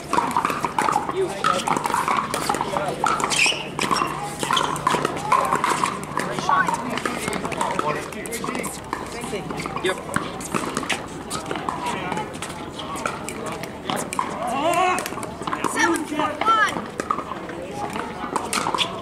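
Paddles hit a plastic ball with sharp, hollow pops.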